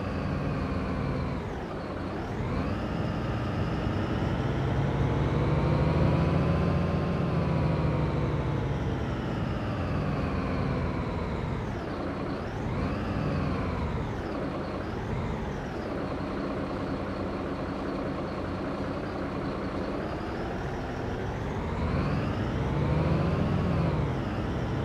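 A truck's diesel engine hums and rises and falls in pitch as it speeds up and shifts gears.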